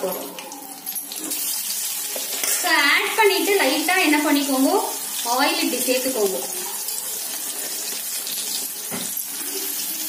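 Oil sizzles and crackles in a frying pan.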